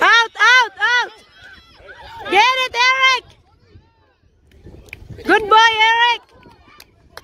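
Young children shout and call out loudly outdoors.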